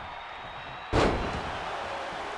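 A body slams hard onto the wrestling ring mat.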